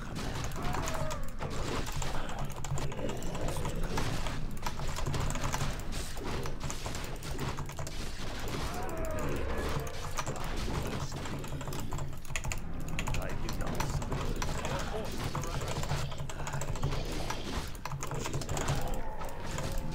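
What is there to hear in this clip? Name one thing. Game battle sounds of clashing weapons and spell effects play.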